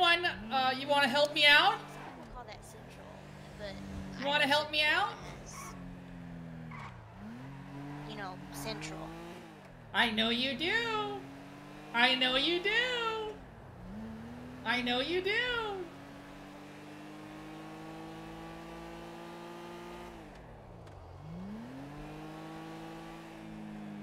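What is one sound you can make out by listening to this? A car engine revs and drones, its pitch climbing and dropping with gear changes.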